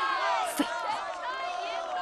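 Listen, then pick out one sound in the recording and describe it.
A young woman speaks coldly.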